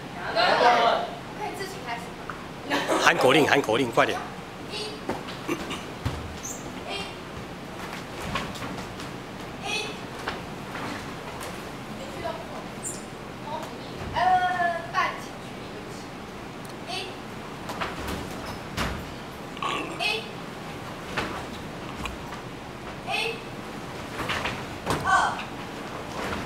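Several voices of women and children shout together in short bursts in an echoing hall.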